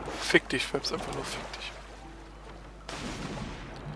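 Water churns and sloshes with swimming strokes.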